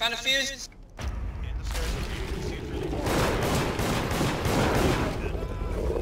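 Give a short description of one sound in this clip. A pistol fires loudly.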